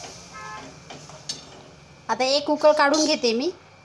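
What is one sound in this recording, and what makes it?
A metal lid clanks onto a pan.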